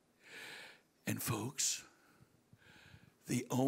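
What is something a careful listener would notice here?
An older man speaks with animation into a microphone, heard through loudspeakers.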